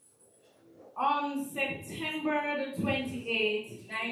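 A man sings into a microphone, heard through loudspeakers.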